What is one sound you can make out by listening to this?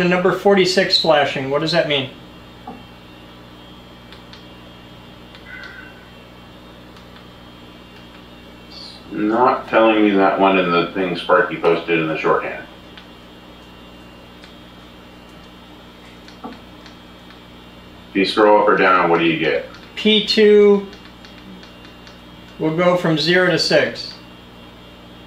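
A man talks calmly nearby, in short bursts with pauses between.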